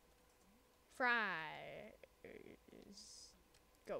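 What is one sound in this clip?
A boy speaks briefly close to a microphone.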